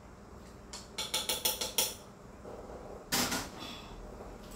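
Utensils clink and clatter against a pan.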